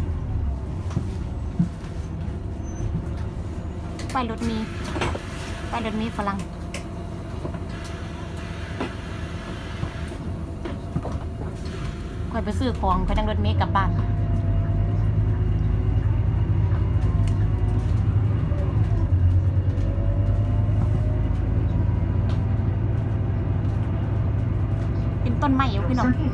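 A bus engine idles with a low rumble, then grows louder as the bus pulls away.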